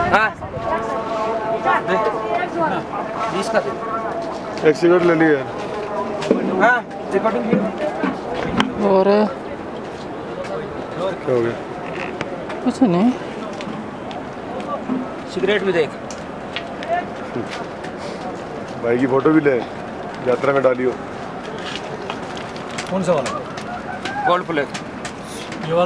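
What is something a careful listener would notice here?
A man talks nearby in a calm voice.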